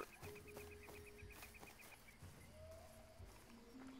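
Footsteps rustle through dry grass.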